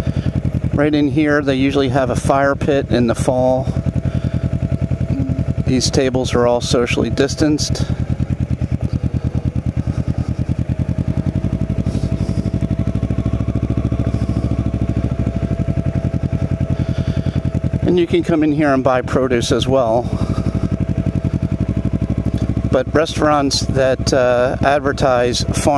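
A motorcycle engine rumbles steadily at low speed.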